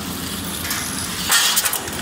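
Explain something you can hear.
Sheet metal screeches and clanks as the shredder chews it.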